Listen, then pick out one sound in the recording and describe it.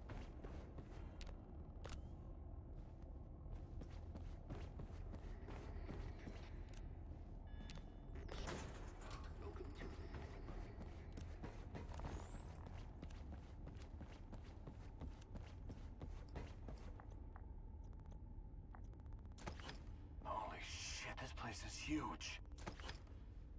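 Heavy footsteps clank on a metal floor.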